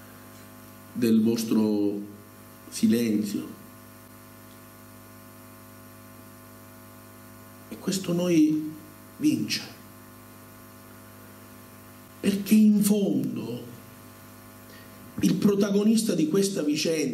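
A middle-aged man speaks calmly through a microphone, with long pauses.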